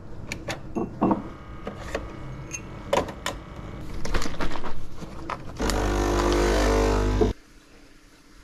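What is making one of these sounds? A coffee machine hums loudly as it runs.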